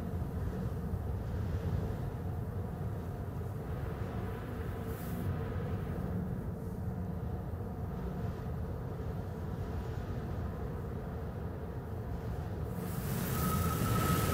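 A low engine hums steadily at idle.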